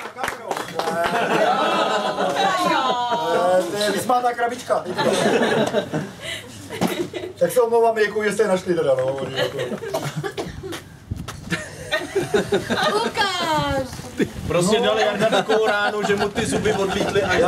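A man speaks with animation to a small crowd nearby.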